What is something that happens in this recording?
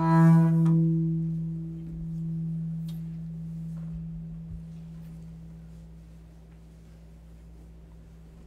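A double bass note rings out low and slowly fades away.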